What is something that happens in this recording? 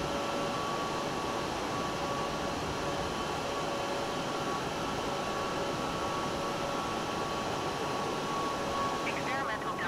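Jet engines roar in flight.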